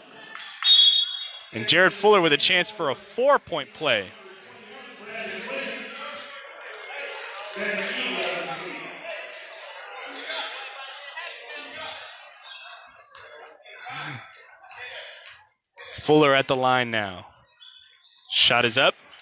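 A crowd of people chatter in a large echoing gym.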